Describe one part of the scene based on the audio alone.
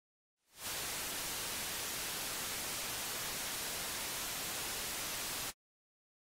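A television hisses loudly with steady static.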